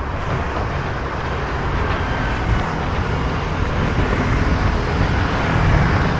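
A motor scooter drives past.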